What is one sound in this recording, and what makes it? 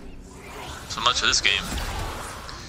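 An icy blast whooshes.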